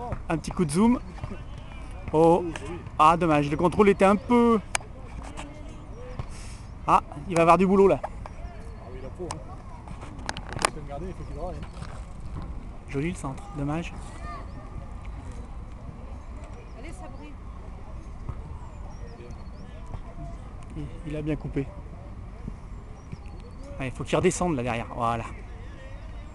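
Children shout and call out across an open playing field.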